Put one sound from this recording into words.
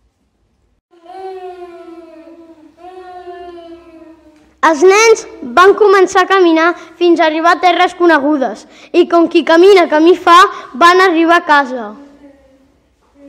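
A child sobs and wails loudly, pretending to cry.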